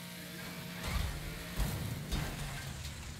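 Cars crash together with a metallic bang.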